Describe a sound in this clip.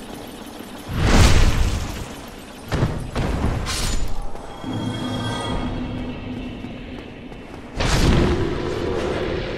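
A blade strikes a body with a heavy thud.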